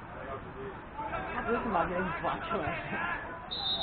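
Young players shout to each other across an open outdoor pitch.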